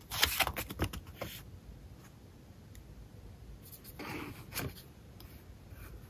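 A paper leaflet rustles as it is unfolded and handled.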